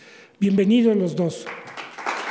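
An elderly man speaks into a microphone.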